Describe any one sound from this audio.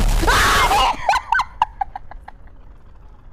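A young woman laughs in short, breathy bursts into a close microphone.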